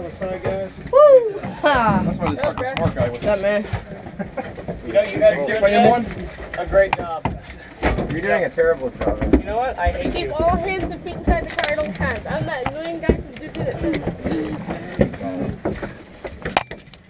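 Several men talk and call out close by.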